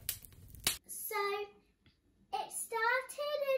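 A young girl speaks with animation close to the microphone.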